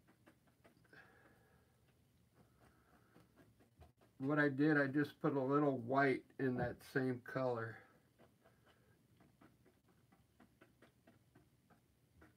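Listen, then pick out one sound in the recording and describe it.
A paintbrush dabs and strokes softly on canvas.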